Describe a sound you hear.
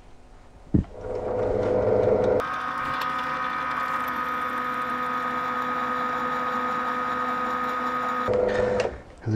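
An electric drill press whirs steadily, then stops.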